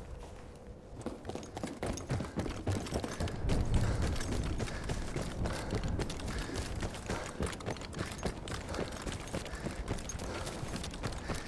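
Footsteps thud quickly and steadily.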